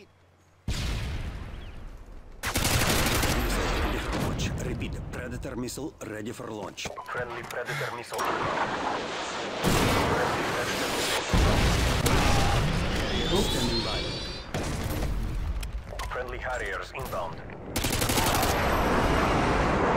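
A rifle fires in short, rapid bursts.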